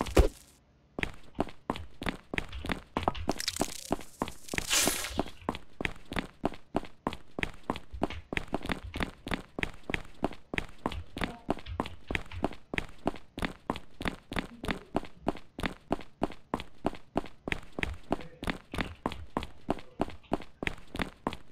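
Footsteps tread steadily and quickly on a hard floor.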